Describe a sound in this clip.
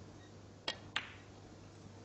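Snooker balls click together.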